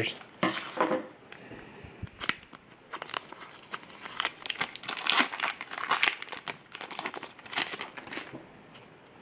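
A foil wrapper crinkles and rustles in hands.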